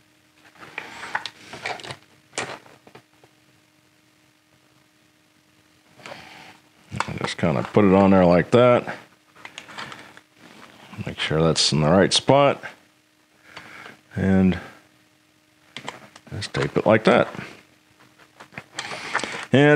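Plastic parts click and rattle.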